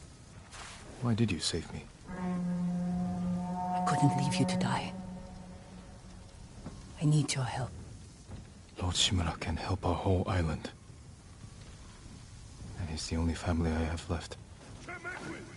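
A young woman speaks softly and emotionally, close by.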